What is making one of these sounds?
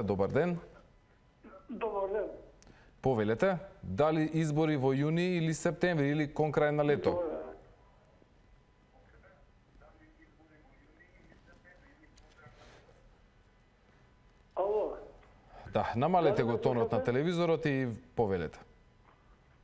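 A young man speaks calmly into a microphone, pausing now and then.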